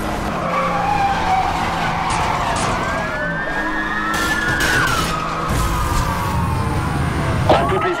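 Car tyres screech while drifting through a bend.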